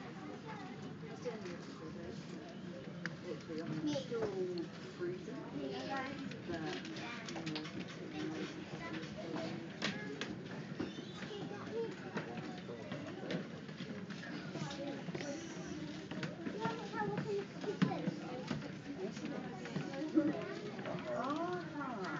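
Men and women chat outdoors at a distance.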